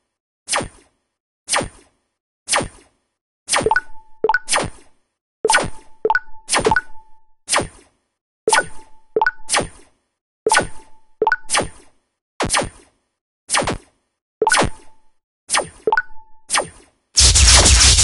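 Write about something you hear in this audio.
Sharp game shots fire in a quick, steady rhythm.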